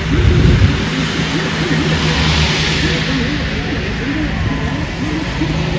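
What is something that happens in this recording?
A car drives past, its tyres hissing on a wet road.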